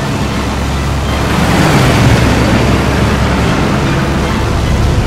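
Aircraft engines roar past close by and fade.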